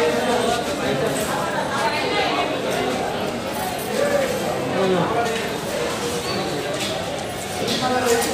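Several men and women chatter at once close by.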